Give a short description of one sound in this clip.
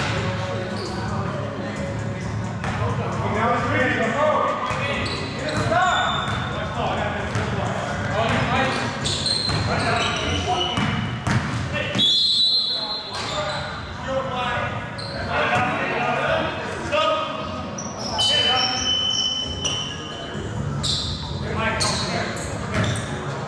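A basketball bounces on a hard floor with echoing thuds.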